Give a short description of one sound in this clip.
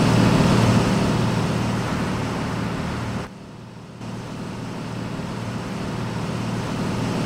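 A heavy truck engine drones steadily.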